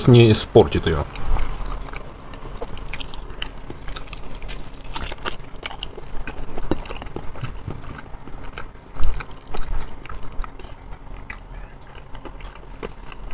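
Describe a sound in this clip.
A man chews and smacks his lips loudly close to a microphone.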